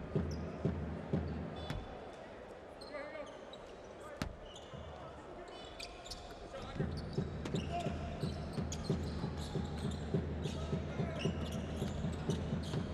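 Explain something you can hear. A basketball bounces rhythmically on a wooden floor.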